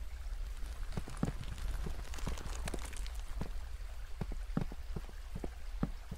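Footsteps crunch on stone.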